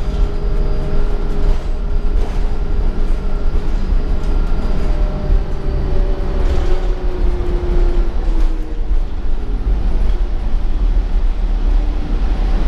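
A bus body rattles and creaks over the road.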